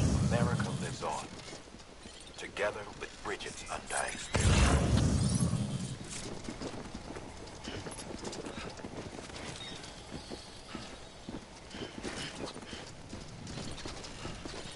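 Footsteps tread steadily on hard pavement.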